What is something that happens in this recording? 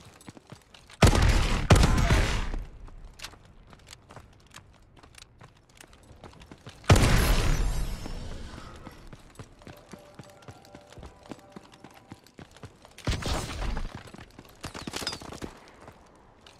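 Gunfire rattles in loud, short bursts.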